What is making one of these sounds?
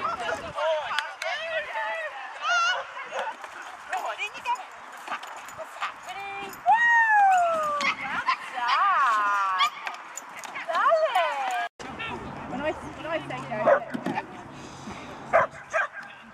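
A woman calls out to a dog in a high, encouraging voice outdoors.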